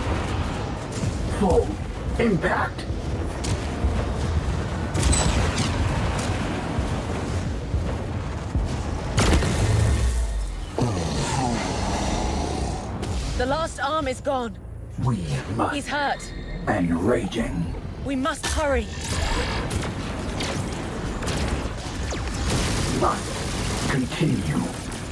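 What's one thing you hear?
A spaceship engine roars steadily.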